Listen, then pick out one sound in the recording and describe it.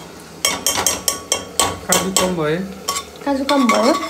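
A metal spoon scrapes inside an aluminium pressure cooker.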